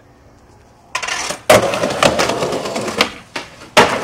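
A skateboard clacks as it lands and grinds on a metal rail.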